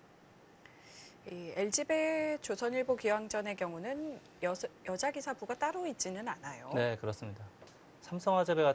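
A woman commentates calmly through a microphone.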